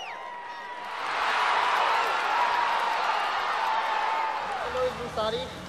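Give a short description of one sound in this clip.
A crowd cheers outdoors at a distance.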